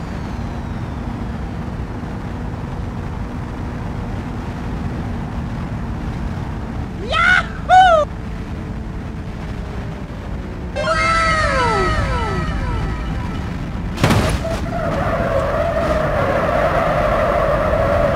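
A car engine hums steadily as the car drives.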